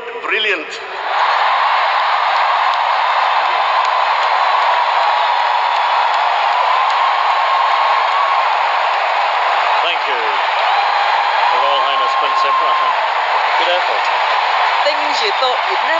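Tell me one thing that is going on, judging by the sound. A large crowd cheers and claps.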